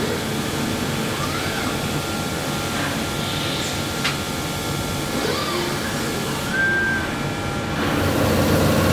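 A robotic arm whirs as it moves in rising and falling whines.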